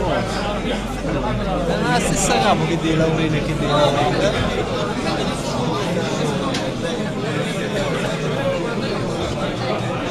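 Many men and women talk over one another loudly in a crowded room.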